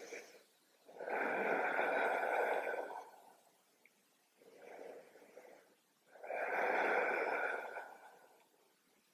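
A woman breathes deeply and slowly.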